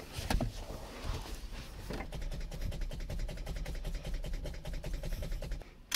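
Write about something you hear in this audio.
A gear lever knocks and rattles as it is moved.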